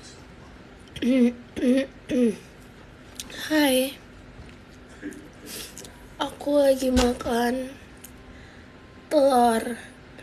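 A young woman speaks close by in short, animated bursts.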